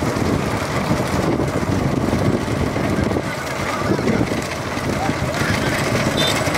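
Cart wheels rumble on the road.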